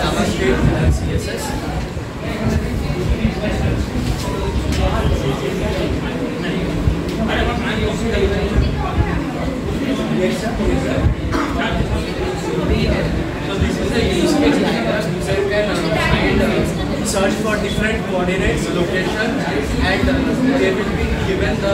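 A young man speaks calmly to a room, presenting.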